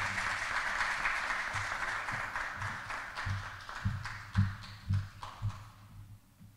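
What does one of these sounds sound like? Footsteps thud on a stage and move away.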